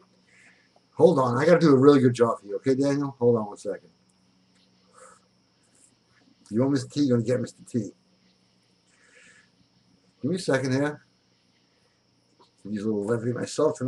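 A middle-aged man talks with animation into a nearby microphone, pausing between phrases.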